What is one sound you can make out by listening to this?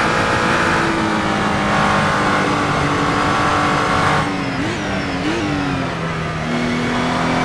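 A racing car engine slows and blips down through the gears while braking.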